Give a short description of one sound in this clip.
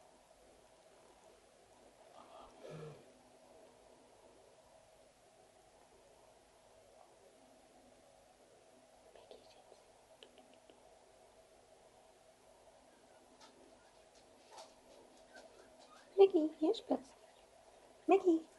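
A rabbit licks and nibbles softly at a spoon.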